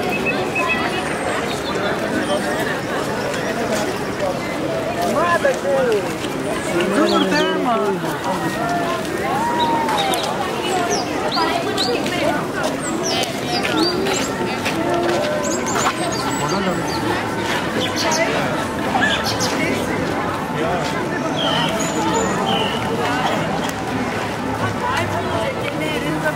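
Footsteps shuffle on gravel.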